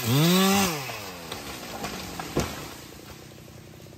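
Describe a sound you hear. A tree crashes down through branches.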